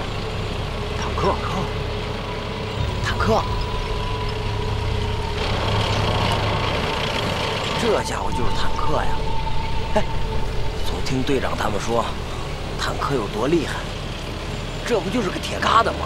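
A young man speaks with surprise, close by.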